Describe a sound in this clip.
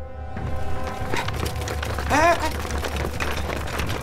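Soldiers' boots march over dirt.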